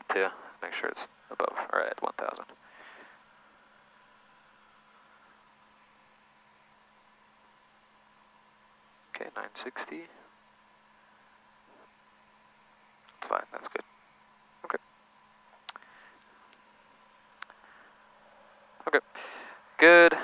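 A man speaks calmly over a headset intercom.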